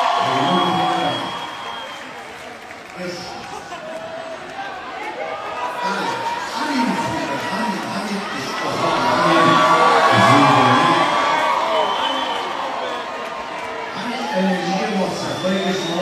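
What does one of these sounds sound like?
A band plays live music through loudspeakers.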